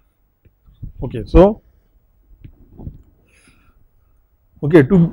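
A middle-aged man speaks calmly into a close microphone, in short bursts.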